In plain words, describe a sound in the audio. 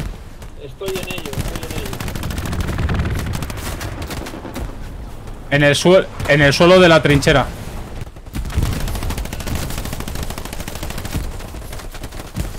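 Rifle shots crack in a video game.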